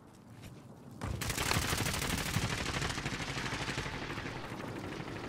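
Footsteps crunch quickly over rocky ground.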